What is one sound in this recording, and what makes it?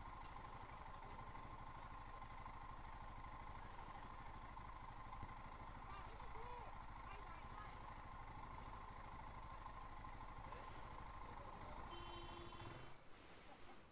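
A motorcycle engine idles with a steady hum.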